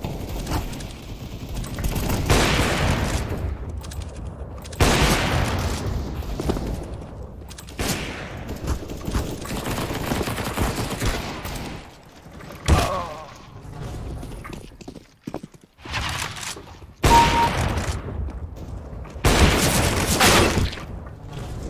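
A sniper rifle fires with loud, sharp cracks several times.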